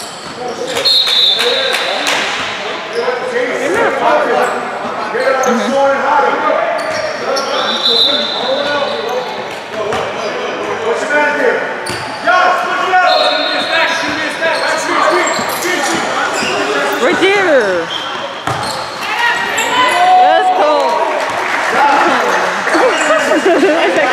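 Young men shout and talk across an echoing gym.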